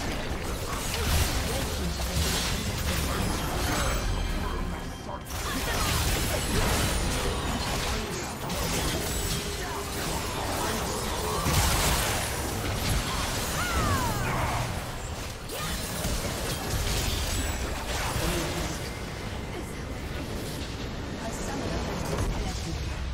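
Spell effects crackle and blast in a fast video game battle.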